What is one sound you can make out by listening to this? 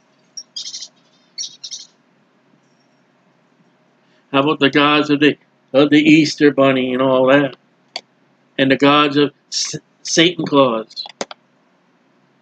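A man speaks calmly into a nearby microphone, in short phrases with pauses.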